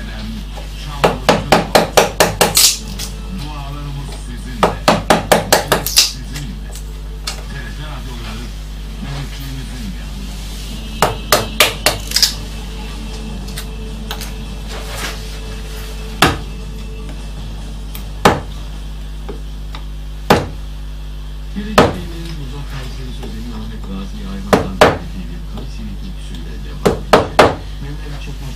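A wooden mallet knocks sharply on a chisel cutting into wood, in quick bursts of blows.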